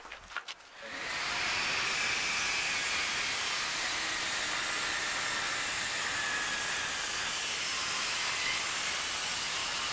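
A table saw whirs loudly as it cuts through wood.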